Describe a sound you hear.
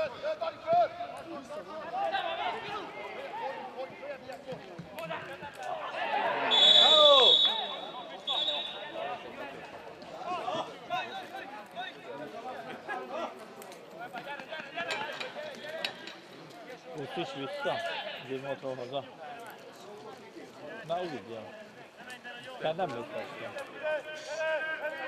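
Men shout across an open field.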